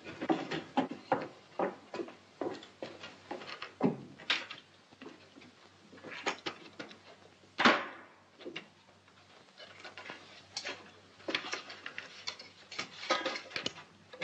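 Objects knock and rattle as a man rummages about.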